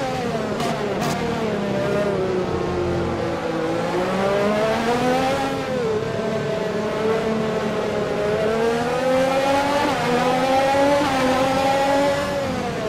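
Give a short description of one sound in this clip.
A racing car engine whines loudly, its pitch rising and falling with gear changes.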